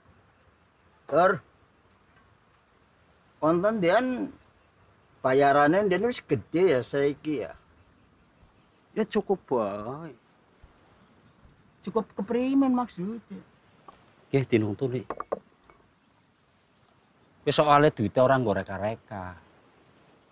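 An elderly man speaks calmly, close by.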